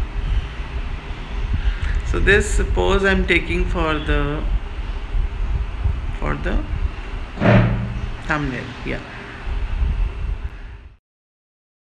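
A woman talks calmly and warmly, close up.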